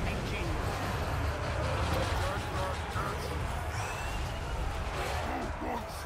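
Battle noise of clashing weapons and shouting troops rumbles steadily.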